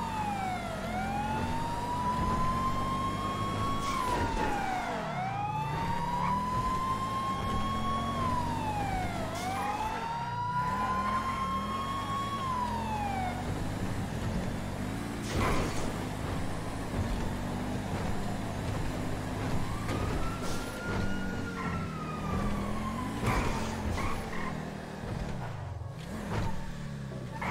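A car engine hums and revs steadily as the car drives.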